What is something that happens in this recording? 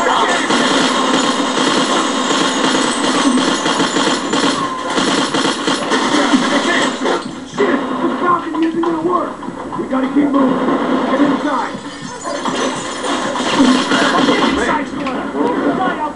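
Guns fire in rapid bursts with loud cracks.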